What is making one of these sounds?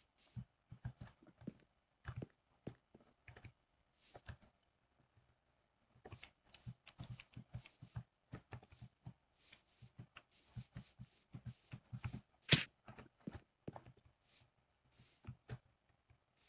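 Footsteps crunch softly over grass.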